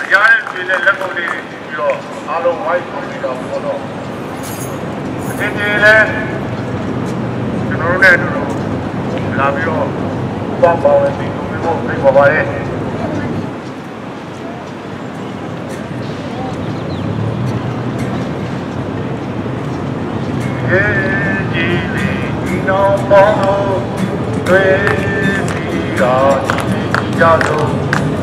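A man speaks loudly through a megaphone outdoors.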